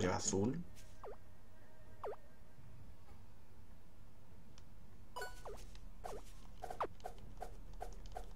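Short electronic game blips chirp now and then.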